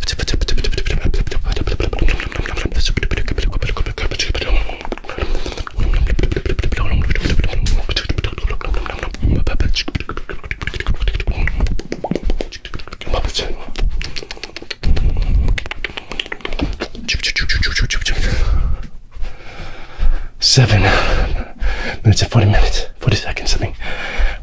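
A man whispers and murmurs very close into a microphone, moving from ear to ear.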